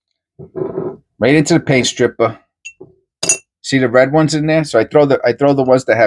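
Coins clink together in a container.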